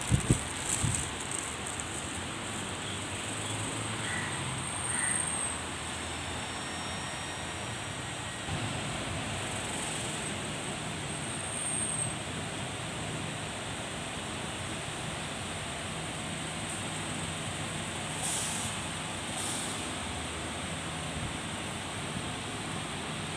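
Bus engines idle and rumble nearby outdoors.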